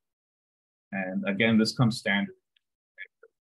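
A man speaks calmly, close to a microphone, over an online call.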